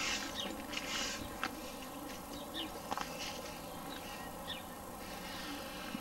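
A broom scrapes and brushes over a dirt path.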